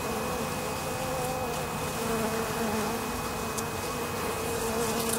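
Bees buzz with a steady hum close by.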